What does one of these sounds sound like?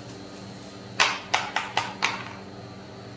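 A paper cup knocks down onto a metal plate.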